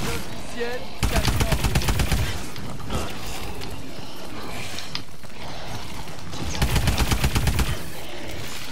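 A rapid-fire gun shoots in short, loud bursts.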